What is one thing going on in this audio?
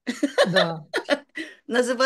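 An elderly woman laughs over an online call.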